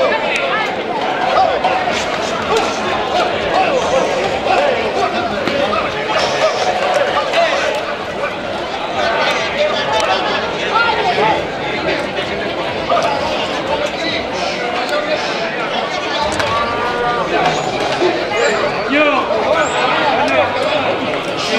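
A large outdoor crowd of men and women chatters and shouts excitedly.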